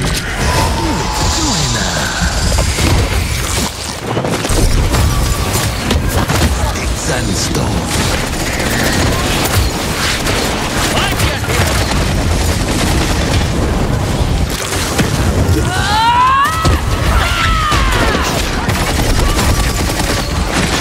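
Rapid magical blasts and impacts crackle and boom through a game battle.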